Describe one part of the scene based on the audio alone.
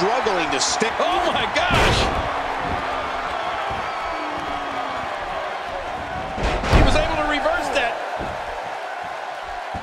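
A large crowd cheers and roars steadily in an arena.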